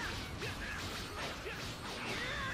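Punches and blows land with sharp thuds.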